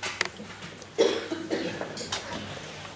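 A brass band starts playing in an echoing hall.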